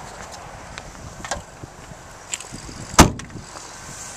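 A car's trunk lid slams shut.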